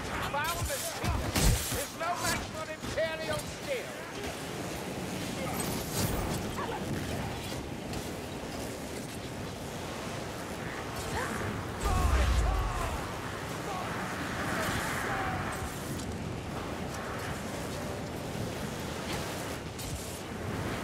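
A sword slashes and strikes flesh with sharp, wet thuds.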